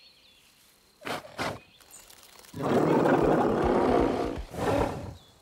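Leafy bushes rustle and shake.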